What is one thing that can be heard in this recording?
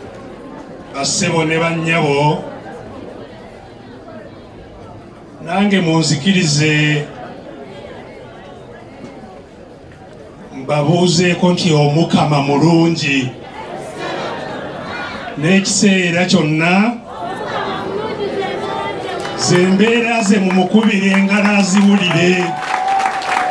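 A man sings loudly into a microphone through loudspeakers, in bursts with pauses.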